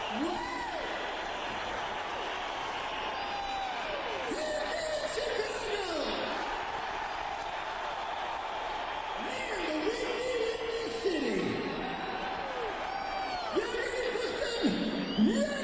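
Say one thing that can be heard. An electric guitar plays gliding, bending notes live in a large echoing arena.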